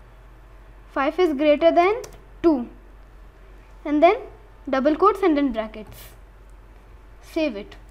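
A young boy speaks calmly and close to a computer microphone.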